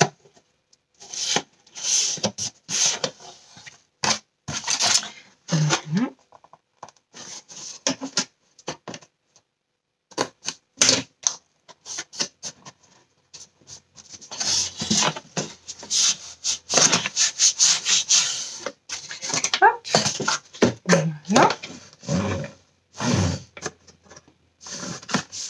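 Cardboard pieces tap and knock against a table.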